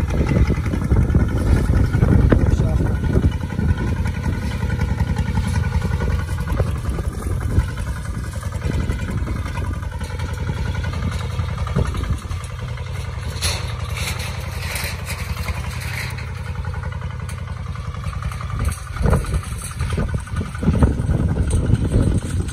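Plough blades scrape through dry soil.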